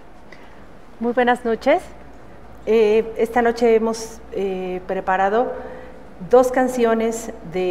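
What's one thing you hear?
A woman sings with vibrato in a large echoing hall.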